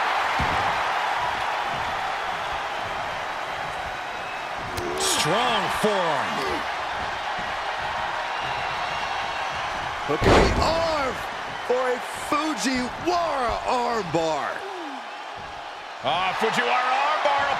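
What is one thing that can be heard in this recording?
A large crowd roars and cheers in a big arena.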